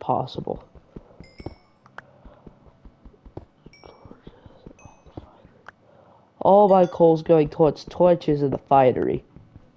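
Footsteps tap on stone in a quick, steady rhythm.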